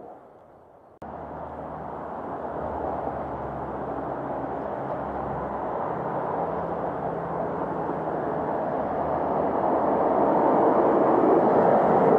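Traffic rumbles steadily along a nearby road.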